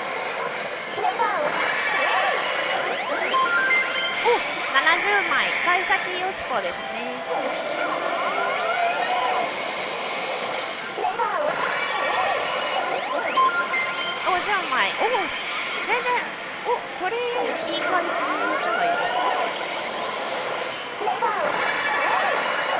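A slot machine plays loud chiming electronic music and jingles.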